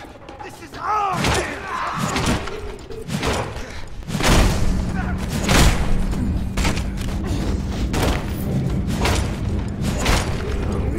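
Heavy blows strike repeatedly with loud thuds.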